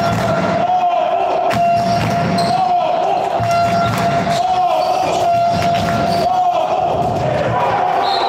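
A handball bounces on a hard floor in a large echoing hall.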